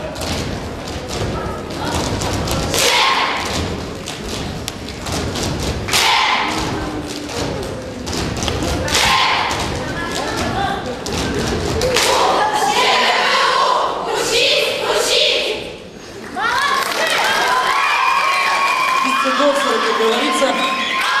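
Feet stomp on a wooden stage in rhythm.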